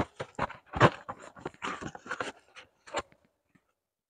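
Hands handle a cardboard box with soft scrapes and taps.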